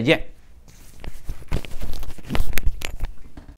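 Clothing rustles and knocks against a clip-on microphone.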